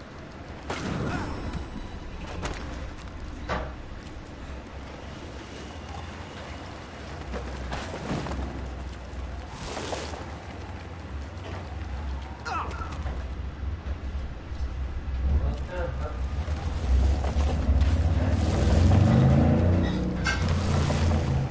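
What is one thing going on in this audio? A sled rumbles and scrapes over snow, growing louder toward the end.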